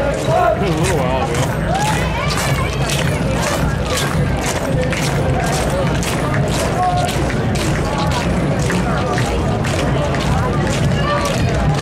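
Many boots stamp on pavement in a steady marching rhythm.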